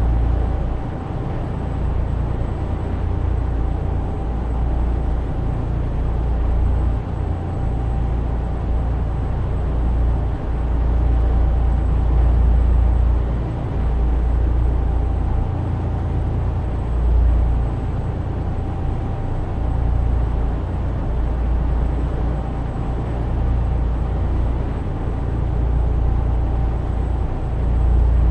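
Tyres roar on a motorway.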